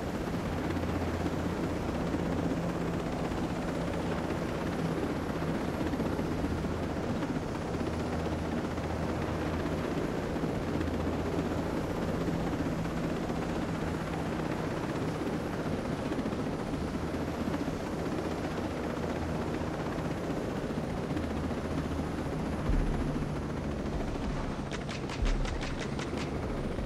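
A military helicopter's rotor thumps and its turbine roars in flight.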